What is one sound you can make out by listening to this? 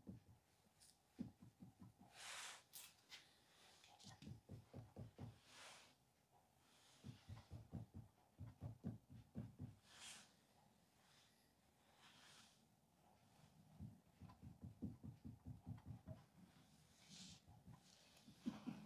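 A hand pats soft clay in quick, rhythmic bursts of dull thumps.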